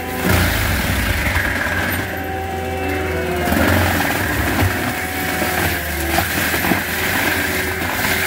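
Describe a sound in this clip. A mulching head grinds and shreds brush and wood chips.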